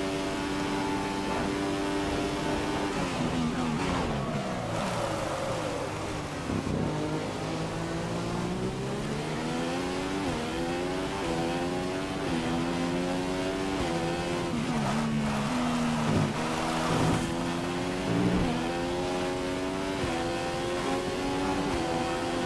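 A racing car engine screams, dropping in pitch on braking and rising as it speeds up through the gears.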